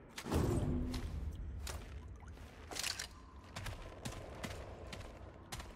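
Heavy footsteps clank on a metal floor.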